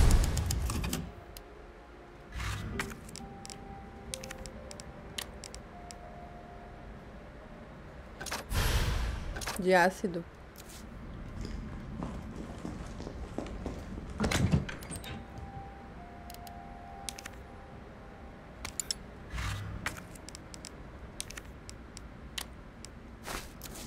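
Short game menu clicks and beeps sound as items are selected.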